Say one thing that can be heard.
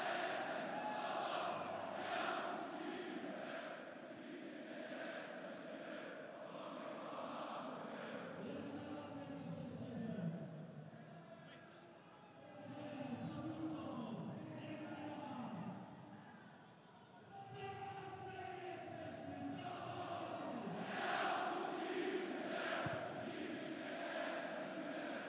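A large stadium crowd chants and sings loudly throughout.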